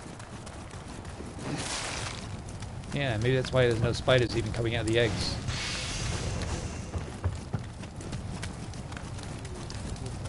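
A torch fire crackles and roars.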